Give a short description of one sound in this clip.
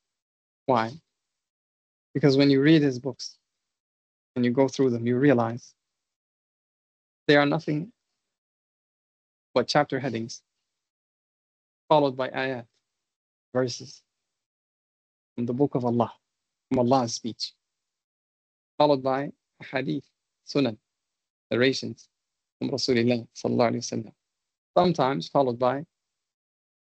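A man speaks calmly in short phrases with pauses, heard close through an online call.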